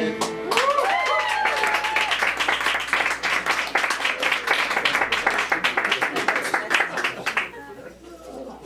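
A small crowd claps and cheers.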